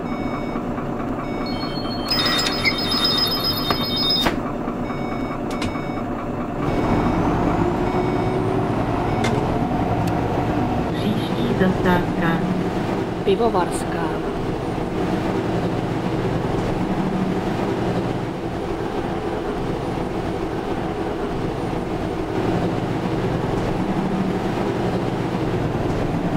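A bus engine hums steadily and grows louder as the bus pulls away.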